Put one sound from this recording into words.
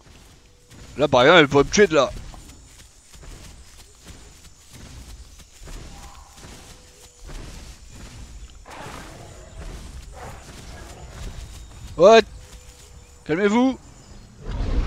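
A dinosaur gives short, sharp shrieking calls.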